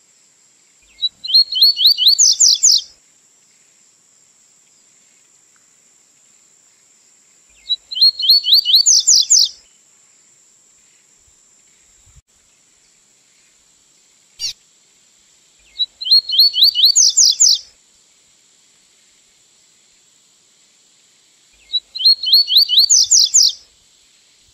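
A small songbird sings short, bright, trilling phrases close by, with long pauses between them.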